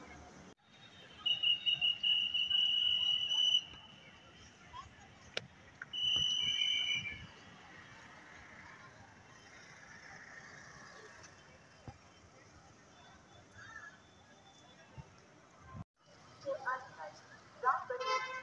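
Light traffic hums outdoors.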